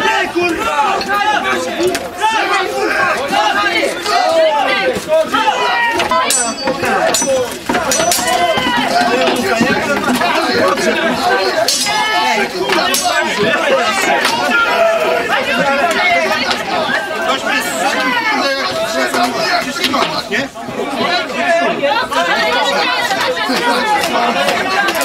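Weapons clatter and knock against wooden shields.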